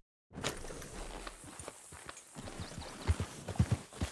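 A horse's hooves thud as it walks on dirt.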